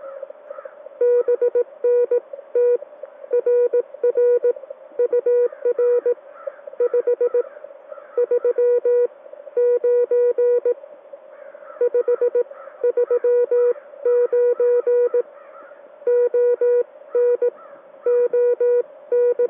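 Morse code beeps sound loud from a radio in quick bursts.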